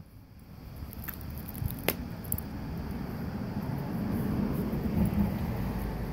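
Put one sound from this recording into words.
A dog rustles and tugs at a crinkly toy.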